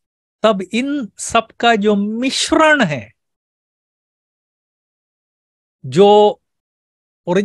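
An elderly man speaks calmly through an online call, with long pauses.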